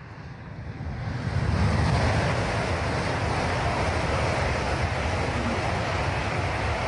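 A high-speed train rushes past close by with a loud, steady roar.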